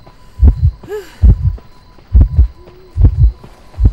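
Footsteps thud steadily as a figure runs.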